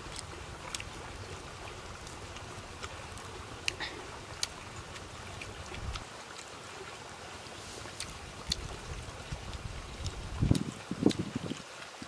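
Fingers pick at crisp fish skin with small crackles.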